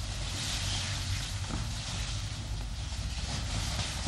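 A jacket's fabric rustles as it is pulled on.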